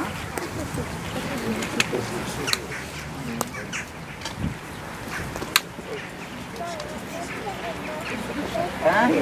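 A small crowd of adults murmurs quietly outdoors.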